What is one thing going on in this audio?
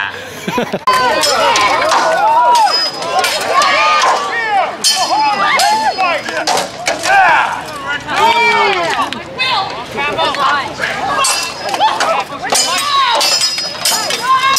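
Swords clash and knock against shields.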